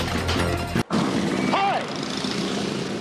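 A middle-aged man shouts with excitement.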